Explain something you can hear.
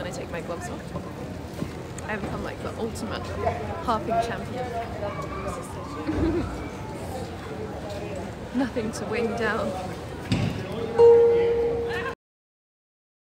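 A harp is plucked softly.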